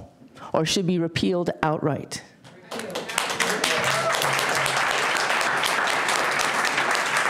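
A woman reads aloud calmly into a microphone.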